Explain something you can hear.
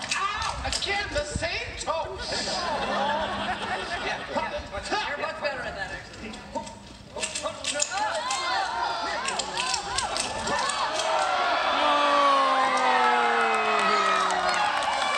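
Men on an outdoor stage shout and speak with animation, heard from a distance.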